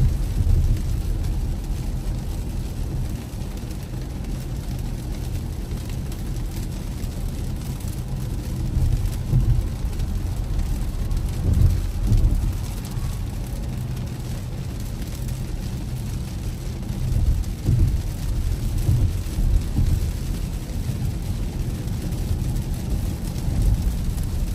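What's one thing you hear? Windscreen wipers thump back and forth across the glass.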